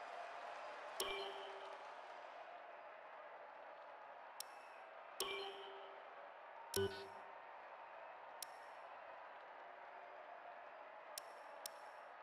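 Soft menu clicks and blips sound now and then.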